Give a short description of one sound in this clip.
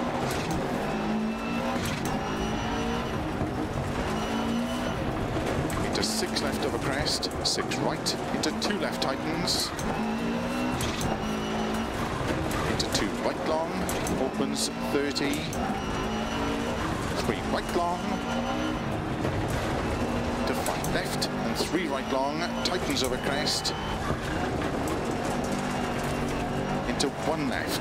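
A rally car engine revs and roars, rising and falling in pitch.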